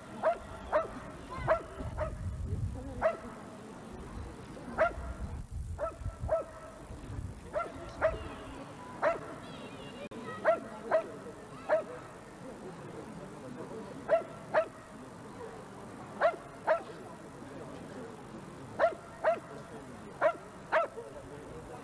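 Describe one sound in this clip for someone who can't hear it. A dog barks loudly in sharp single barks.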